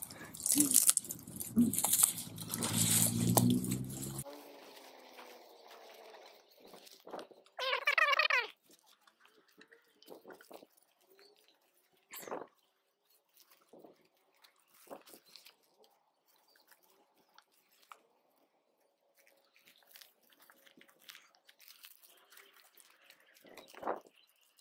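A hand rustles through leafy plants.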